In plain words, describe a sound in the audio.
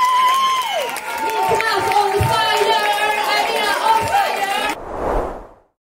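A woman sings into a microphone.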